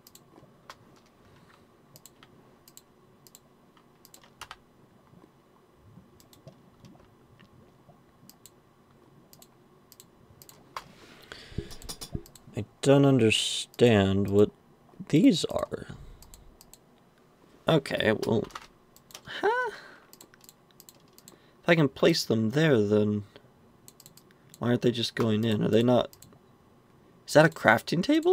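Soft clicks of items being moved in a game menu come now and then.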